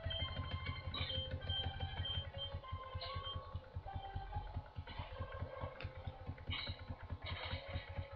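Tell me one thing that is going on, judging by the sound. Short electronic game blips and effects chime.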